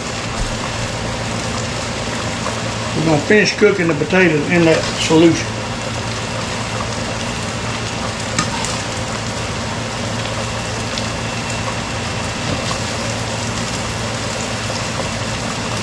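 Water bubbles at a boil in a pot.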